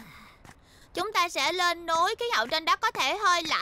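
A young girl speaks brightly with animation.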